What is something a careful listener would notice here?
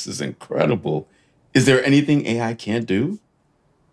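A man chuckles softly.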